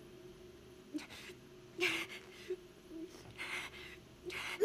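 A young woman speaks softly and sadly.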